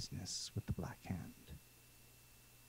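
A man speaks briefly through a headset microphone over an online call.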